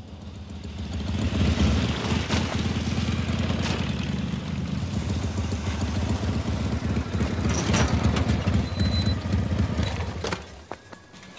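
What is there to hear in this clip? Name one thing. A motorbike engine roars loudly as it rides past and away.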